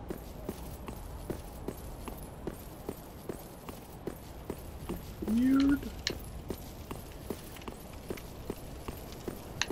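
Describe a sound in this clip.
Footsteps tread steadily on stone.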